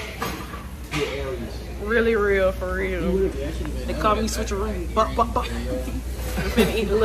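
A woman talks and laughs close to a phone microphone.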